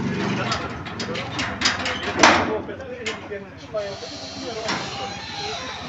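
A metal gate rattles and clanks as it is pushed open.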